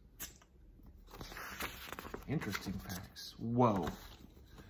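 Paper pages rustle as they turn.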